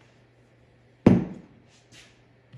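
A heavy power tool is set down on a wooden table with a loud thud.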